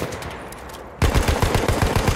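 A machine gun fires in a rapid burst, close by.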